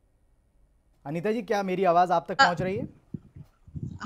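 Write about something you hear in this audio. An older woman speaks with animation over a microphone.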